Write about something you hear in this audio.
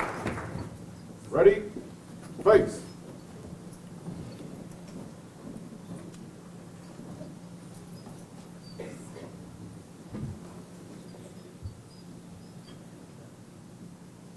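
A crowd murmurs quietly in a large hall.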